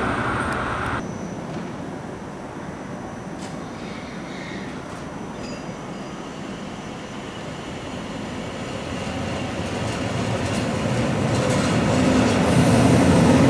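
A train approaches slowly, its rumble growing louder.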